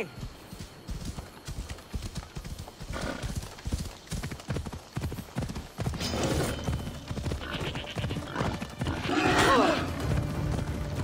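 A horse's hooves thud steadily as it trots.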